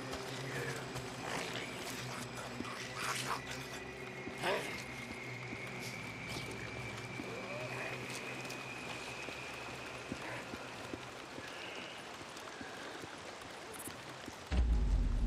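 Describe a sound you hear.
Footsteps crunch softly on concrete as a man walks in a crouch.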